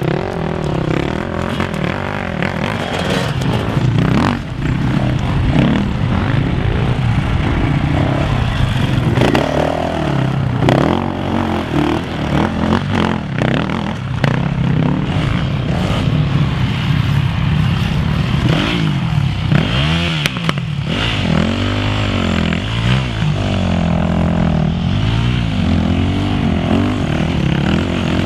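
Dirt bike engines rev and roar up close, rising and falling in pitch.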